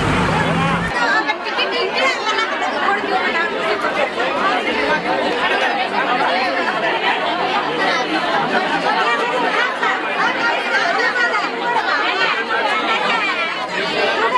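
Many voices of a dense crowd shout and talk loudly at close range.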